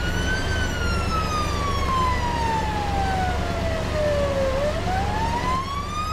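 A siren wails, slowly falling and then rising in pitch.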